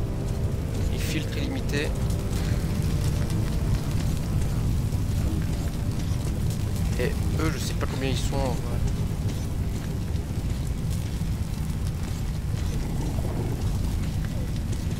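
A young man speaks calmly into a microphone, close by.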